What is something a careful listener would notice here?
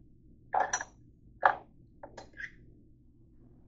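A hand knocks against a dish rack with a few sharp clatters.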